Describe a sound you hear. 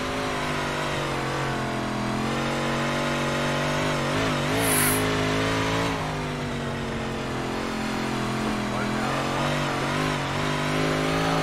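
A race car engine drones steadily, rising and falling in pitch.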